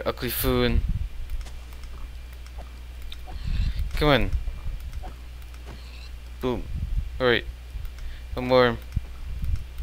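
Pigs grunt and squeal in short, repeated bursts.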